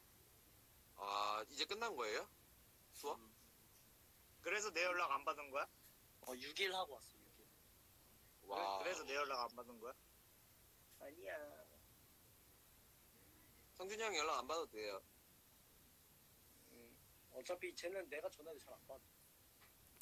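A young man speaks casually in short bursts, heard through a phone call.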